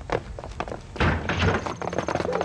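Several men run across hard ground with quick footsteps.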